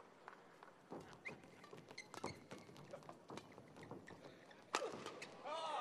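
A shuttlecock is struck back and forth with sharp pops in a large echoing hall.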